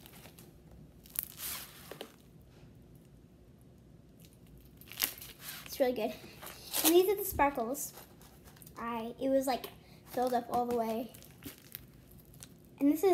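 Slime squelches and stretches in a hand.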